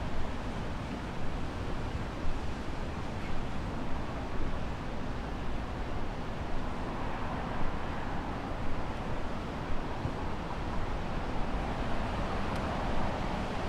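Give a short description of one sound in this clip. Wind gusts steadily and rumbles outdoors.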